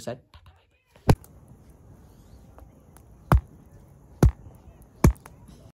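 An axe chops into wood with sharp thuds.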